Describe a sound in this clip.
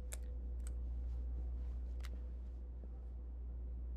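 Footsteps tap on a hard floor in a quiet hall.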